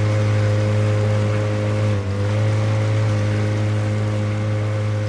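An outboard motor drones steadily as a small boat moves over water.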